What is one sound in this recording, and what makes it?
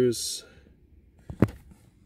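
A finger scrapes along a rusty metal frame.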